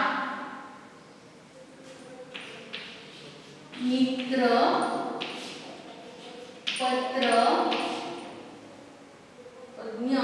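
A woman speaks calmly, as if teaching.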